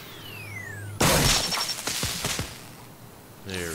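A loud blast bursts out suddenly.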